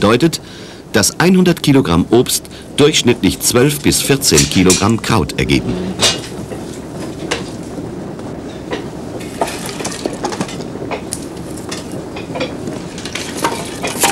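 Wooden sticks clatter and knock as they are fed into a fire.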